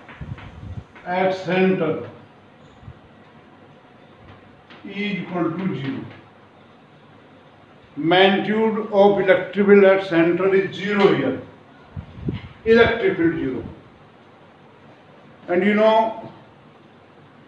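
An elderly man speaks calmly and clearly into a close microphone, in short phrases with pauses.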